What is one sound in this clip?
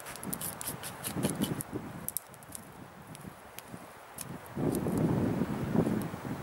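A knife whittles and scrapes at a wooden stick.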